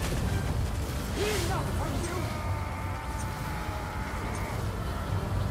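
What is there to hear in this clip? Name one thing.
Energy blasts roar and crackle steadily.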